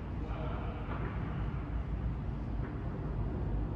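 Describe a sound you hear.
Padel balls are struck by rackets with sharp pops in a large echoing hall.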